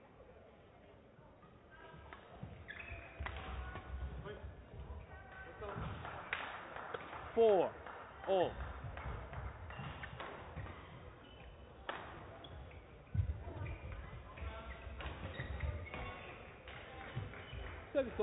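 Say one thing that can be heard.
Rackets strike a shuttlecock back and forth in a large echoing hall.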